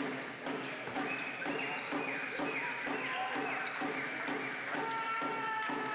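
A basketball bounces steadily on the court.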